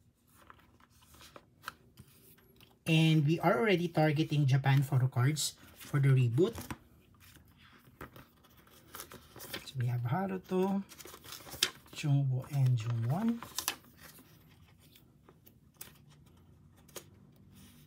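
Plastic sleeves crinkle and rustle.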